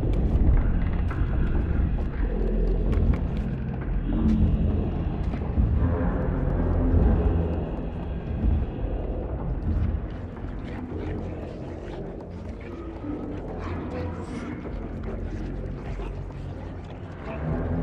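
Small footsteps patter across wooden floorboards.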